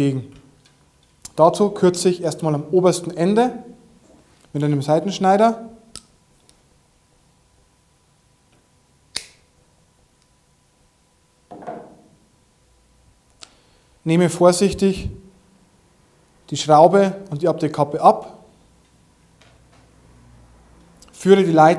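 A man talks calmly and clearly into a nearby microphone.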